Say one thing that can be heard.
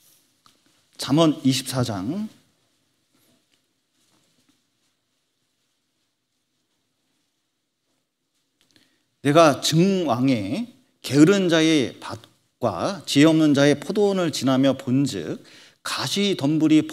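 A man speaks calmly and clearly into a microphone, with pauses.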